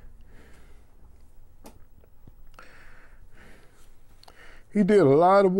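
An elderly man speaks quietly and haltingly, close by.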